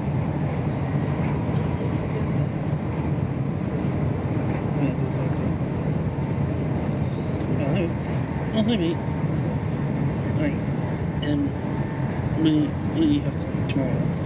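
Train wheels click and rattle over the rails.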